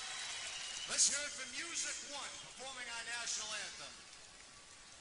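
A large crowd cheers and applauds loudly in a big hall.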